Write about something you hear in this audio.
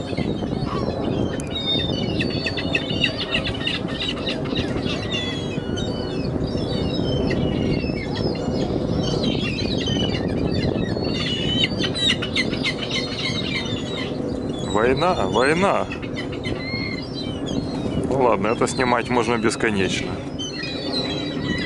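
Gulls' wings flap as birds take off.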